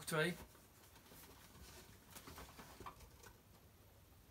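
Cardboard boxes rustle and knock as a man takes one from a carton.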